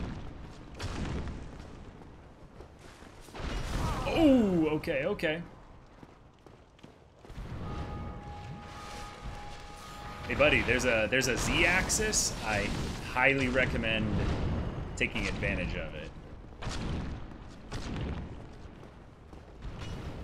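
Weapons clash and thud in a game fight.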